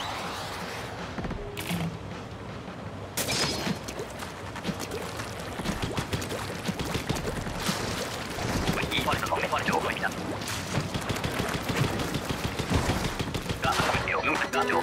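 Liquid splatters in rapid wet bursts.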